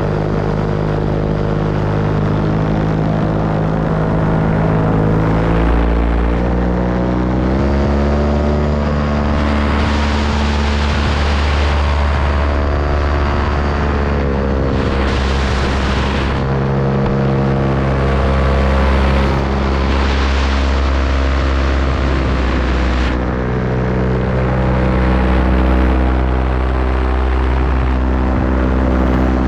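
A small engine drones loudly and steadily, its pitch shifting up and down.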